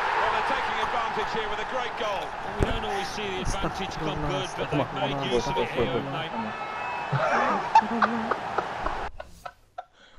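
A large crowd roars and cheers in a stadium.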